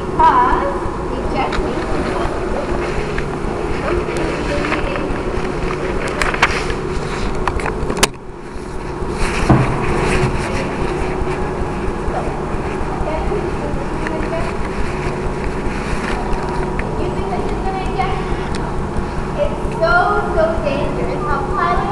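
A crowd of adults chatters nearby in an echoing room.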